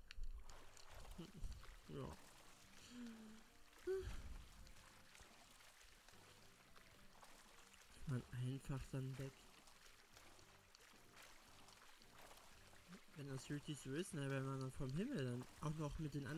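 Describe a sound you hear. Water splashes softly as a swimmer paddles.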